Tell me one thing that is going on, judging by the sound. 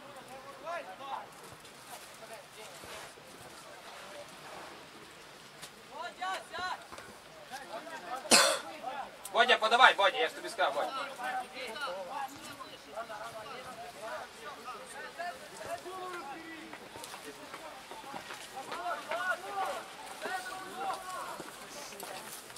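Men shout to each other outdoors on an open field.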